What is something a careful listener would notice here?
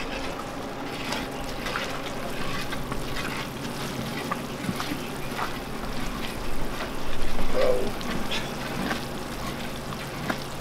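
A thick liquid bubbles and sizzles in a metal pot.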